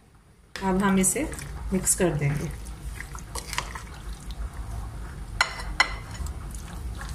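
A plastic spoon scrapes and taps against a glass bowl.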